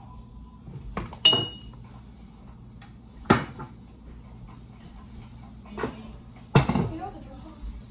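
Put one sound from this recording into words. Dishes and pans clatter and knock.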